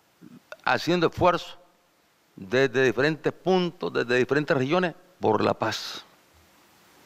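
A middle-aged man speaks emphatically into a microphone.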